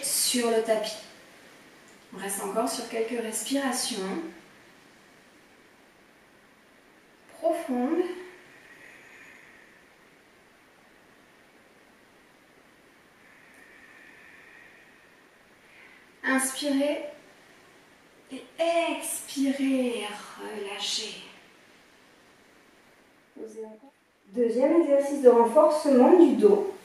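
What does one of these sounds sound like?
A woman speaks calmly and clearly into a nearby microphone, in short phrases with pauses.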